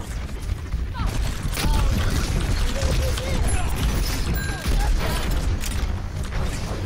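A gun fires in quick, sharp bursts.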